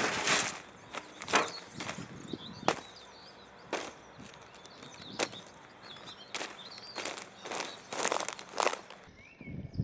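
Dry branches snap and crackle as they are handled.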